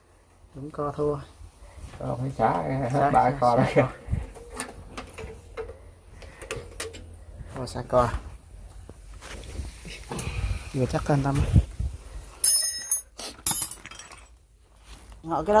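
A man talks nearby in a casual voice.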